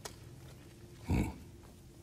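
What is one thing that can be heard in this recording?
A deep-voiced man grunts briefly.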